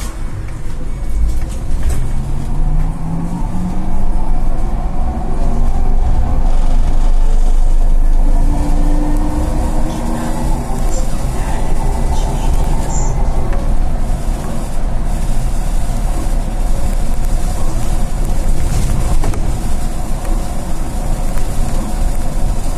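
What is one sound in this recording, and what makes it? A bus rumbles and rattles steadily along the road.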